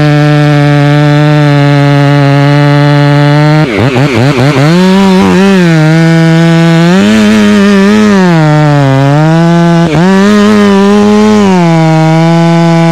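A chainsaw engine runs steadily close by.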